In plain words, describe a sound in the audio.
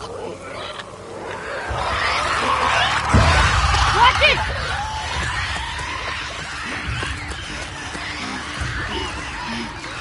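Footsteps thud across a hard floor.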